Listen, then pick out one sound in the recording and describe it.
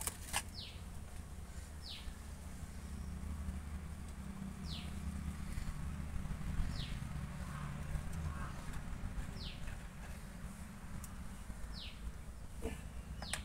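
A chainsaw engine idles nearby with a low, steady rumble.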